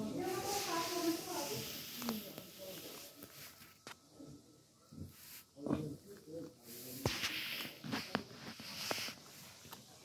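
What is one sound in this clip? Fabric rustles under a kitten's paws.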